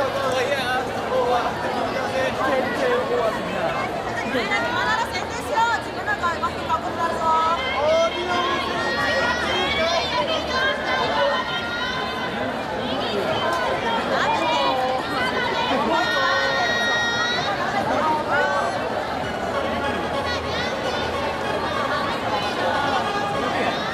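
A group of young women sing together in a large echoing hall.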